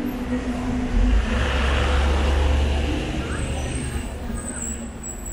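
A bus rumbles past nearby.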